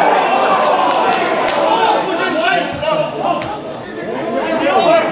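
A crowd of spectators sings and chants loudly outdoors.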